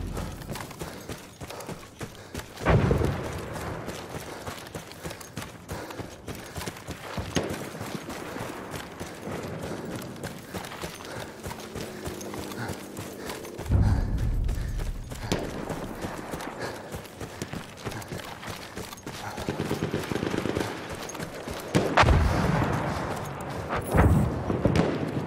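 Footsteps crunch quickly on sand and gravel.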